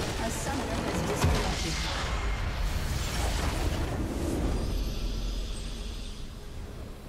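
A video game explosion booms with a deep rumble.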